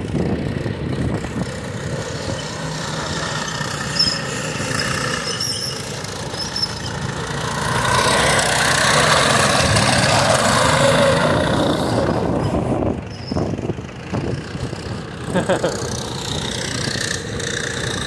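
Small go-kart engines buzz and rev as the karts drive past.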